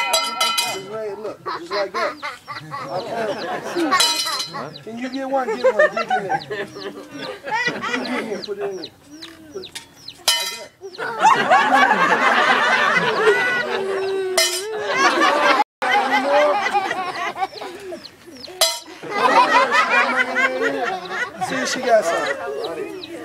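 A young boy speaks and laughs.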